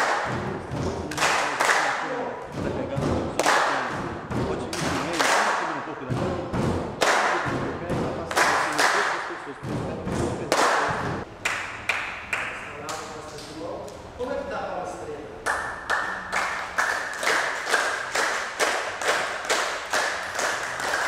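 A group of people clap their hands in a steady rhythm in an echoing room.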